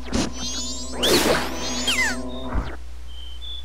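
A bright burst of sparkling chimes rings out.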